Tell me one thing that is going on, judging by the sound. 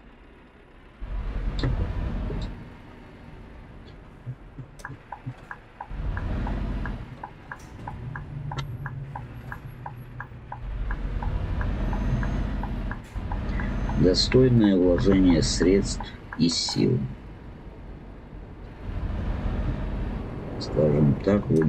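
A truck engine rumbles low and swells as it accelerates.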